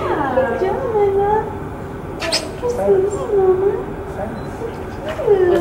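A young woman talks in a high, singsong voice close by.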